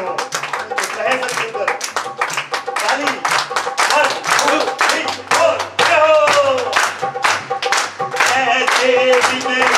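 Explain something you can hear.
A hand drum beats steadily.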